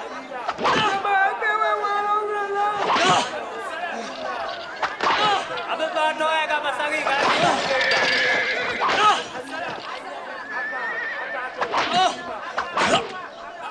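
A man cries out and moans in pain.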